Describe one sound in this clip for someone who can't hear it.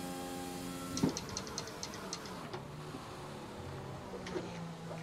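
A racing car engine pops and crackles as it shifts down under braking.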